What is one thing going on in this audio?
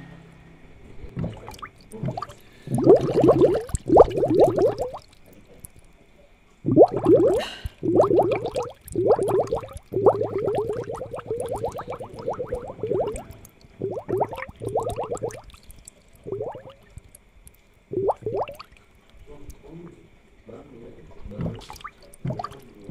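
Air bubbles gurgle steadily in a fish tank.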